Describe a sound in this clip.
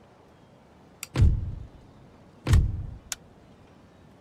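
A game menu opens with a click and a deep whoosh.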